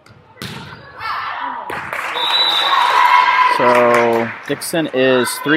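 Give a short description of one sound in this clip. A crowd cheers loudly in an echoing gym.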